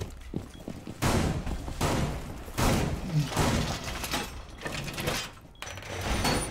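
A heavy metal panel scrapes and clanks into place.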